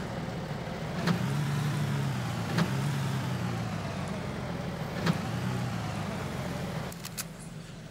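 A vehicle engine hums steadily and then stops.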